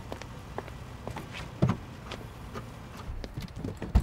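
A car tailgate thuds open.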